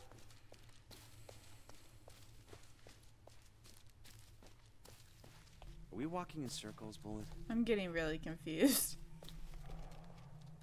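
Footsteps rustle and crunch through dry undergrowth.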